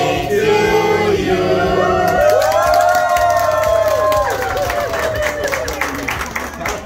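A group of men, women and children sings together loudly, close by.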